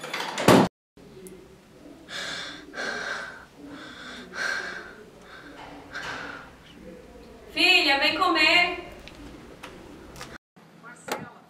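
A young woman speaks close by, calmly and softly.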